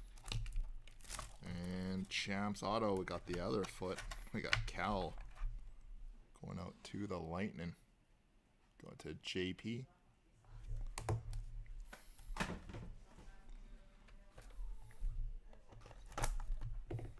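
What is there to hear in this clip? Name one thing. Cardboard packaging scrapes and rustles as it is handled.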